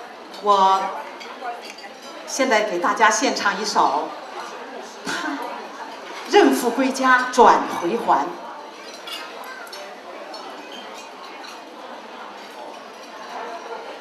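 A middle-aged woman speaks animatedly through a microphone in a reverberant hall.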